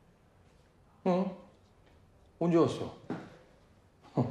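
A man speaks quietly and briefly, nearby.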